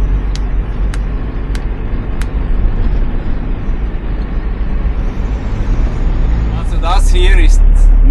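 A vehicle engine rumbles steadily while driving fast.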